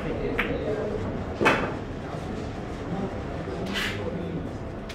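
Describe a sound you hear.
Billiard balls clack sharply together.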